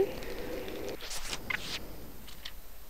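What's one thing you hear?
A soft whooshing chime plays as a game menu opens.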